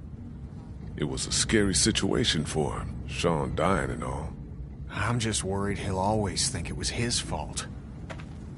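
A man with a rough voice answers, close by.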